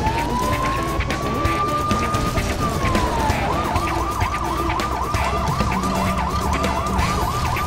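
A police siren wails, rising and falling quickly.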